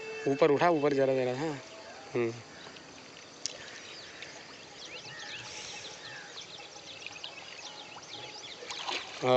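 A small fish splashes and flaps in shallow water.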